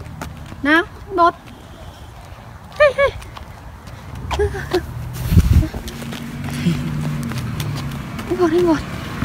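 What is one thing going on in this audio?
A young child squeals and babbles in short high bursts close by.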